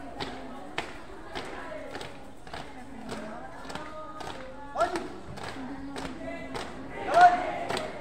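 Feet stamp in unison on hard ground in a steady marching rhythm.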